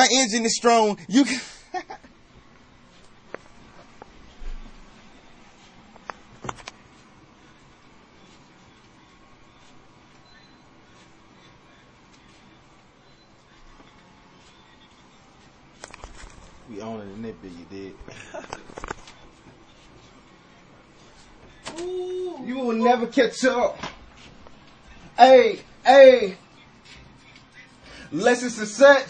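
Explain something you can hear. A young man talks loudly and with animation close by.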